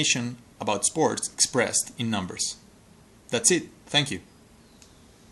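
A young man talks calmly close to the microphone.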